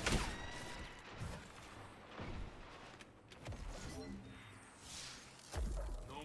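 Gunshots boom in short bursts.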